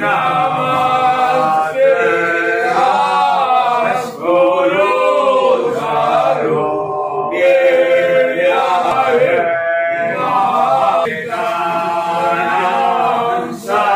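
A group of men chant together in a steady, melodic rhythm.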